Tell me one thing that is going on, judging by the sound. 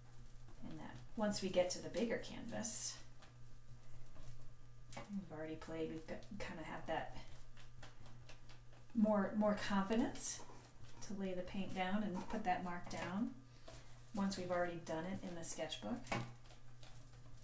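A woman talks calmly, close by.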